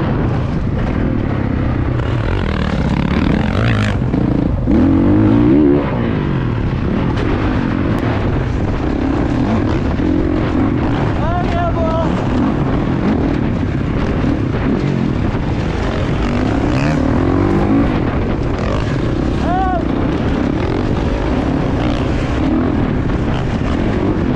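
A dirt bike engine revs and roars up close.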